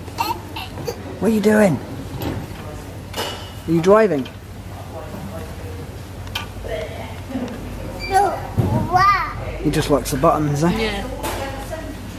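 A small child babbles and squeals excitedly.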